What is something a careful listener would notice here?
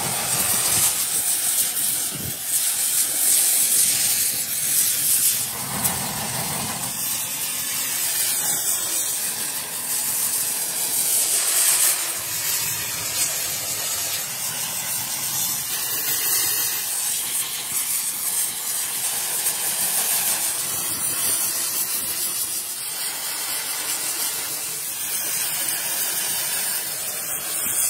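A gas torch roars steadily.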